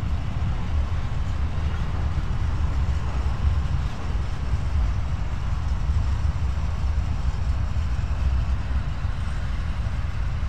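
A long freight train rumbles steadily past on the rails.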